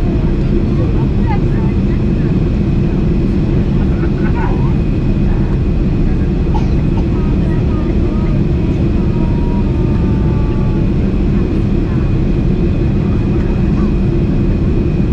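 Jet engines roar steadily with a deep, constant rumble.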